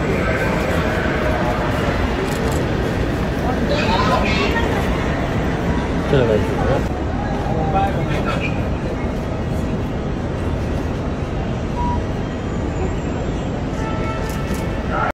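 A crowd of people talks and murmurs close by in a busy, echoing hall.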